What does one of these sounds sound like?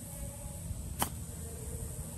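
A golf club strikes a ball with a sharp click.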